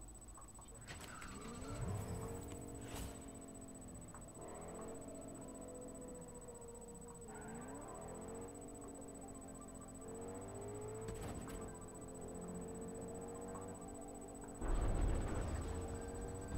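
A pickup truck engine hums and revs as it drives.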